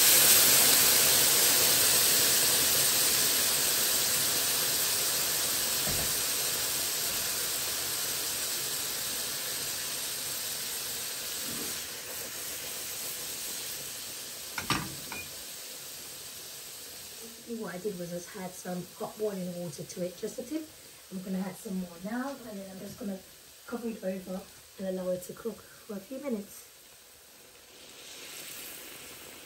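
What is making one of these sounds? Liquid pours into a sizzling pan.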